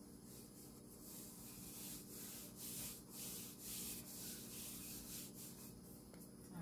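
A rolling pin rolls over dough.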